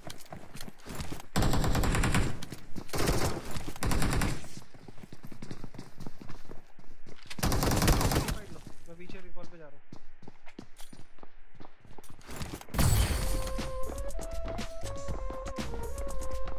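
Footsteps thud quickly up stairs.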